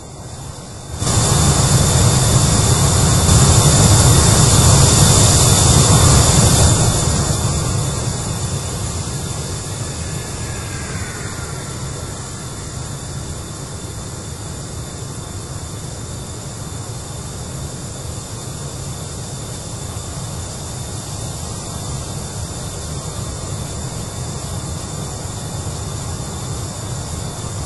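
A jet engine roars loudly and steadily, then eases to a lower drone.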